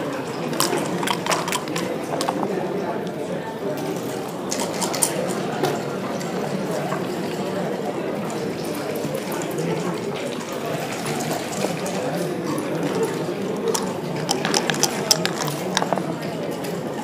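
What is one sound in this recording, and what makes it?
Dice rattle and tumble onto a wooden board.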